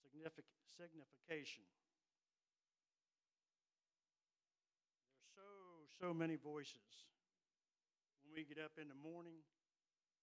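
An elderly man preaches into a microphone in measured phrases with long pauses.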